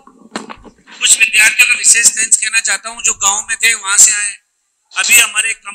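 A man speaks with animation into a microphone over loudspeakers.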